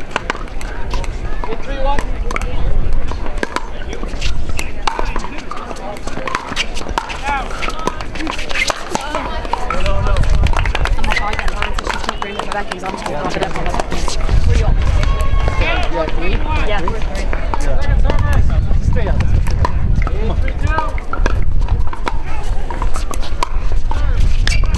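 Men and women chatter nearby and around the courts.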